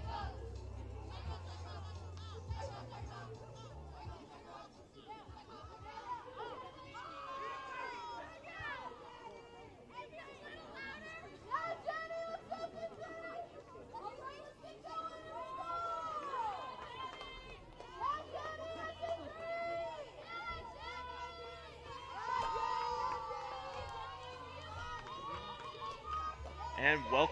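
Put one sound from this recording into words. Young women chant and cheer loudly from across an open field.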